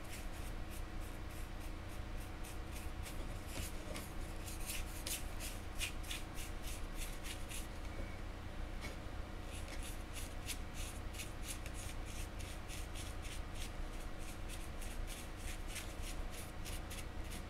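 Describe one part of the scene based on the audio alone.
A stiff brush dabs and scratches rapidly against a metal surface.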